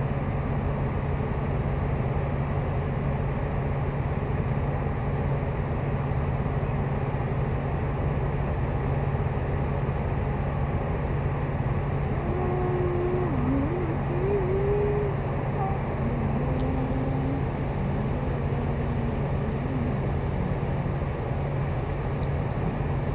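A bus engine idles nearby with a steady low rumble.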